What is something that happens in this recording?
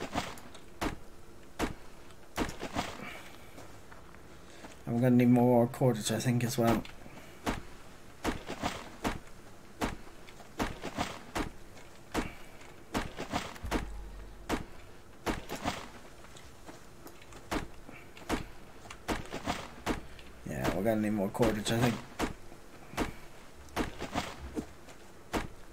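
An axe chops into a tree trunk with repeated sharp knocks.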